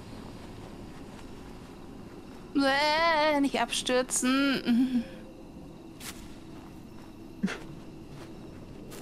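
Footsteps crunch slowly over rocky ground.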